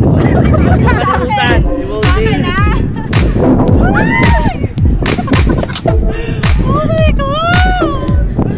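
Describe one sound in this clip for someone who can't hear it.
A young woman laughs and squeals loudly close by.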